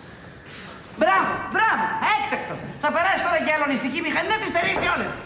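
A woman sings loudly in a high, wavering voice nearby.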